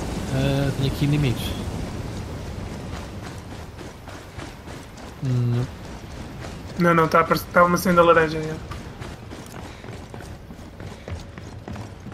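Footsteps crunch quickly over gravel and dirt.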